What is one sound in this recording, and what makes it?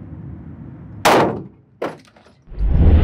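Two gunshots bang sharply in an echoing room.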